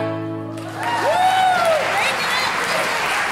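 Stringed instruments ring out a final held chord.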